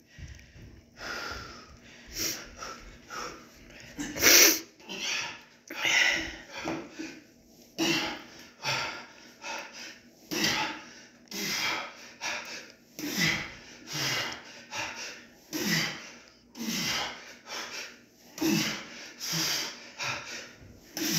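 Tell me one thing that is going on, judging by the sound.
A middle-aged man breathes hard, exhaling with each lift.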